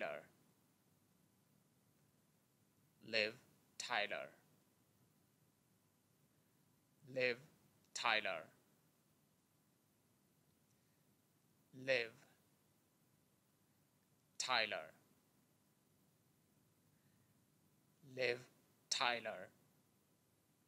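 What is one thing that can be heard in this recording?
A young man says a short name clearly into a microphone, close by, repeating it with pauses.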